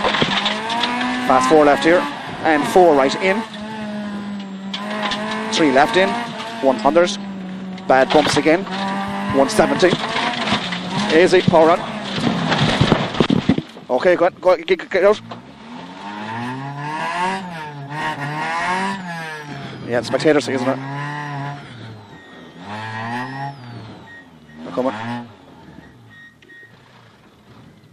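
A rally car engine roars and revs hard, rising and falling in pitch.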